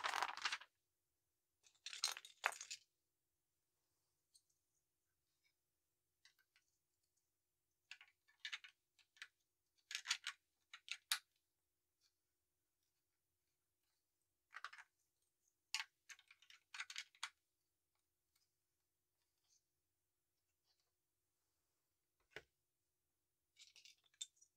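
Plastic toy bricks click and rattle as they are handled.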